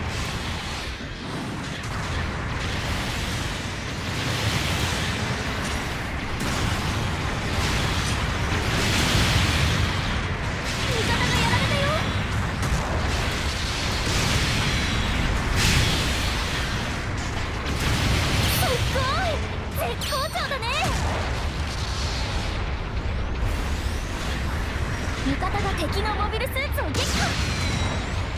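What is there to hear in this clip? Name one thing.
Rocket thrusters roar steadily as a giant robot boosts along.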